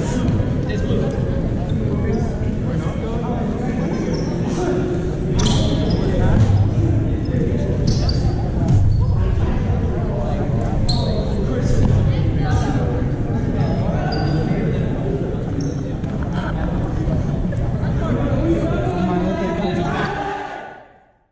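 A crowd of young players chatters and calls out in a large echoing hall.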